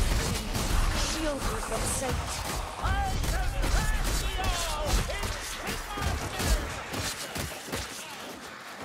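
Blades hack and thud into monsters in quick, heavy blows.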